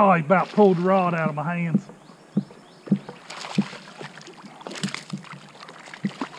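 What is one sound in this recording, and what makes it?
A hooked fish splashes at the water's surface.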